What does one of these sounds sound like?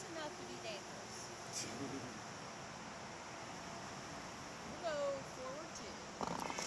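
A young woman talks casually nearby.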